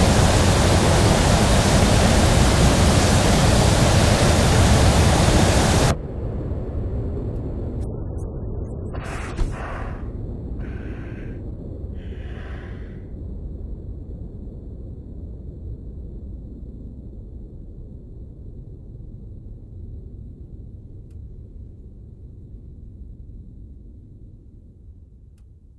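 A jet engine roars loudly, then drops to a low, steady rumble that slowly fades.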